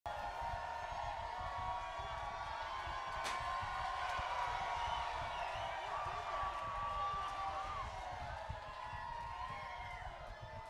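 A crowd cheers and shouts close by.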